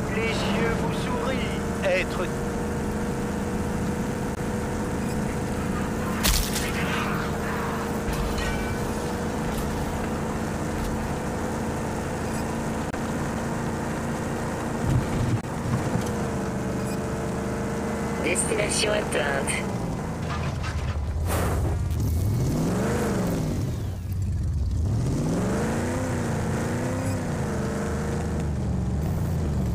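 A vehicle engine roars steadily as it speeds along a dirt track.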